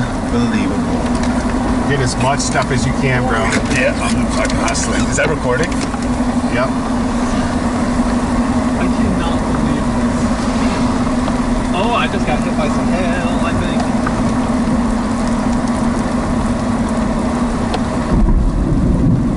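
Wind roars loudly outside a moving vehicle.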